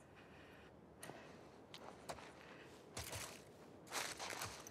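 Footsteps shuffle softly on a floor.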